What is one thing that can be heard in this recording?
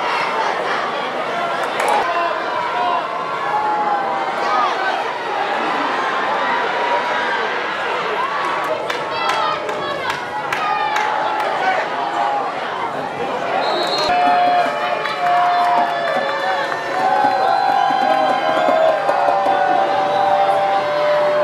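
A crowd cheers and shouts outdoors.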